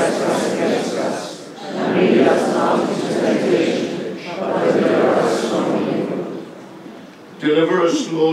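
A crowd of people murmurs and shuffles outdoors.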